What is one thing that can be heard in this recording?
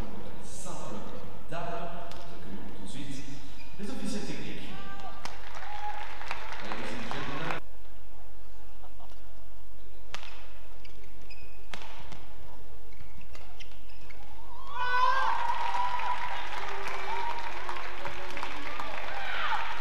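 Rackets strike a shuttlecock in a quick back-and-forth rally.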